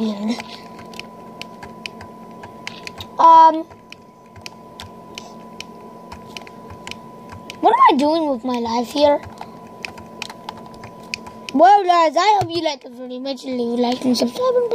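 A video game plays soft, repeated tapping sound effects through a speaker.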